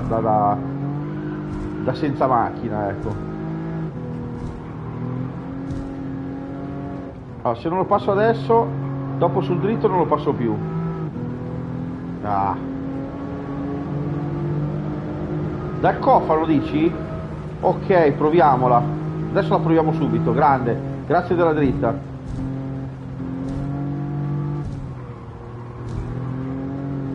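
A racing car engine drones steadily, rising and falling in pitch with gear changes.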